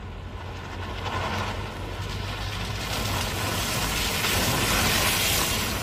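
Tyres splash through puddles of water.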